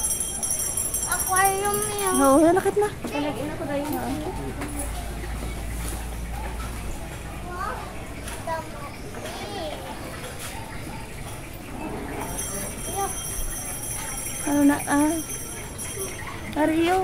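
A young girl speaks in a high, lively voice.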